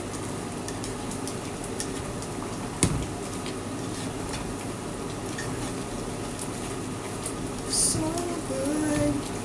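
Food sizzles steadily in a frying pan.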